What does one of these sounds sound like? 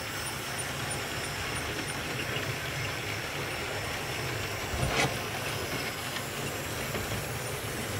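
A model train rumbles and clicks along its tracks.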